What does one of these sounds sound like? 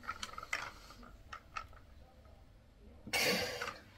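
A metal dumbbell clicks and clanks as it is handled.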